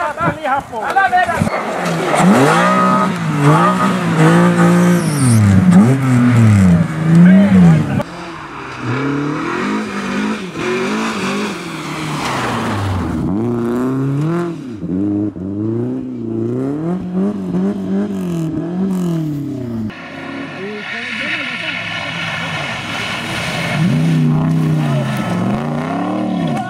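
A rally car engine revs hard, its pitch rising and falling.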